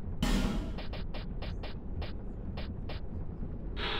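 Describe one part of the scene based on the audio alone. Game menu cursor clicks tick in quick succession.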